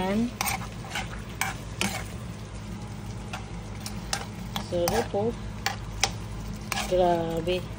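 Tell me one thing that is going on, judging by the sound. A metal spoon clinks and scrapes against a frying pan.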